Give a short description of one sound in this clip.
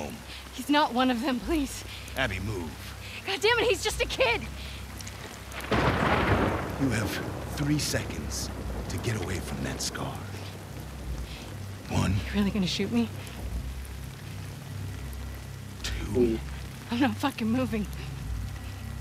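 A young woman pleads urgently.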